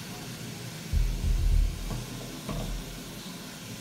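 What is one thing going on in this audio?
A metal door latch clicks and thuds.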